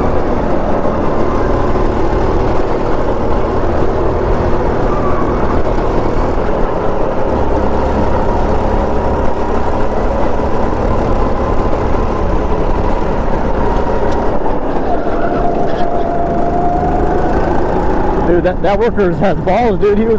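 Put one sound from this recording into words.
A small kart engine buzzes loudly close by, rising and falling in pitch as it speeds up and slows down.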